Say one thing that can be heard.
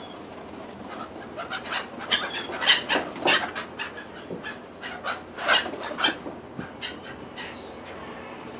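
Gulls screech and cry close by.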